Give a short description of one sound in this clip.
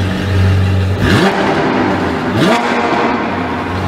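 A sports car engine revs sharply twice.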